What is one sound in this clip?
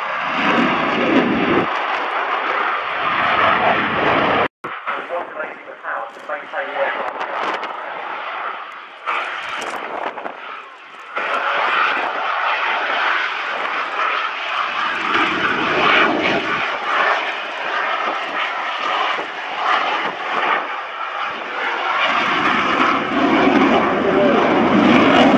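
A jet engine roars overhead with a loud, rushing noise that swells and fades.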